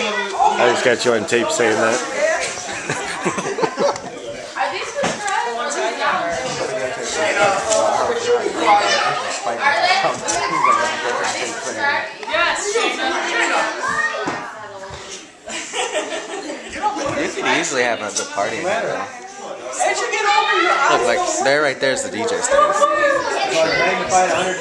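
Several adults chat and laugh together close by.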